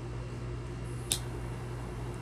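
A lighter clicks and sparks.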